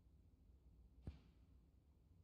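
A cue strikes a snooker ball with a single sharp click.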